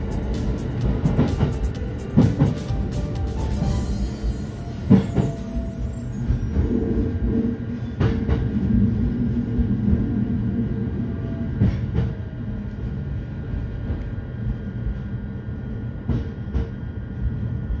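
The rails click and knock beneath a train.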